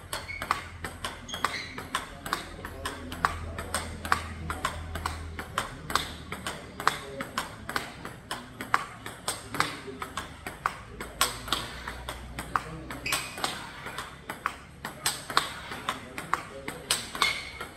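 A table tennis ball bounces on the table.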